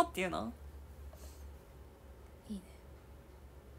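A young woman speaks briefly and softly, close to the microphone.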